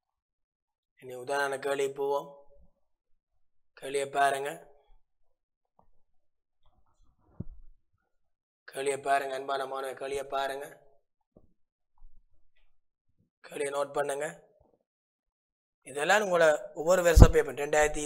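A man explains calmly through a microphone, in short phrases with pauses.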